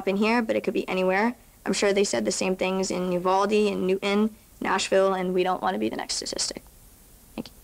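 A young girl reads aloud into a microphone.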